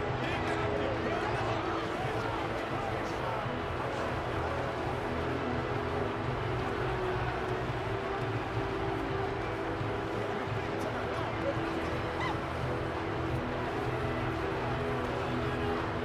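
A large crowd murmurs and cheers steadily in a big stadium.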